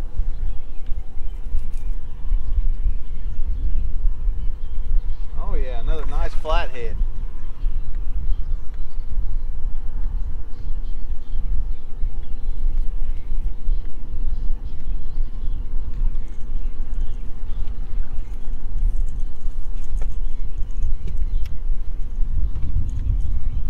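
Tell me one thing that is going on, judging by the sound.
Wind blows steadily across an open microphone outdoors.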